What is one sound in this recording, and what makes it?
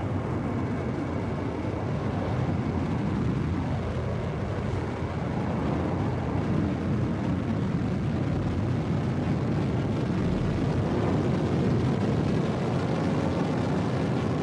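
A spacecraft engine roars steadily as it flies at high speed.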